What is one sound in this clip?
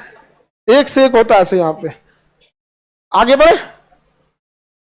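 A young man speaks with animation through a headset microphone, close by.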